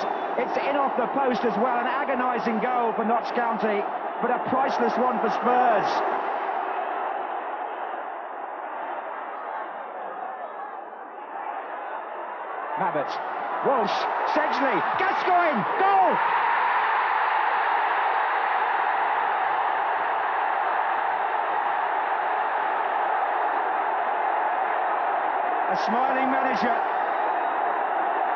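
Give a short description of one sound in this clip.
A large stadium crowd roars and cheers, swelling loudly after a goal.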